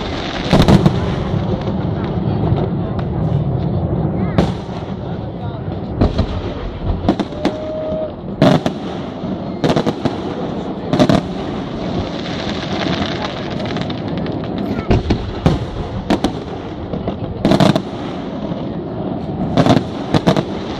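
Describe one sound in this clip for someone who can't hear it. Fireworks burst with loud booms and bangs.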